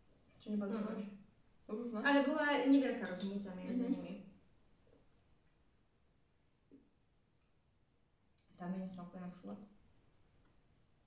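A second young woman answers calmly close by.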